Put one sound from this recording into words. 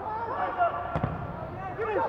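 A football is struck hard with a sharp thump.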